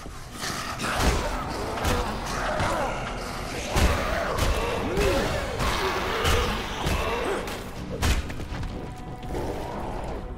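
A heavy bat thuds repeatedly into flesh with wet, squelching blows.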